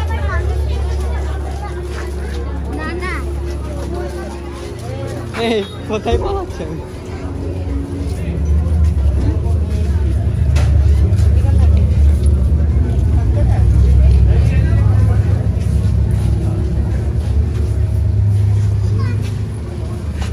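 A crowd of men and women chatter nearby.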